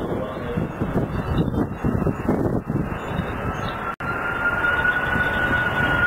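Jet engines roar as a large airliner approaches low overhead.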